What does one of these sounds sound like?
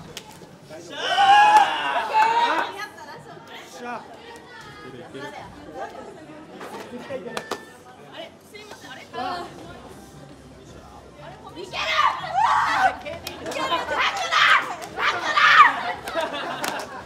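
Young women shriek with joy nearby.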